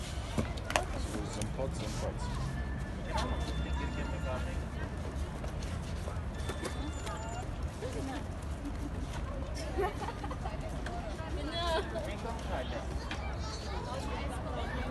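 Voices murmur in the background outdoors.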